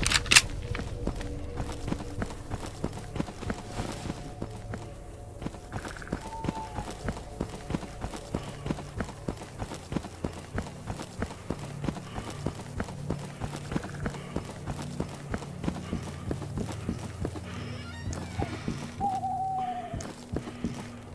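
Footsteps crunch at a steady walking pace.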